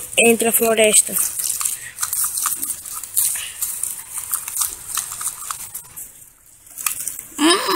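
Leaves rustle and brush as a toy is pushed through them.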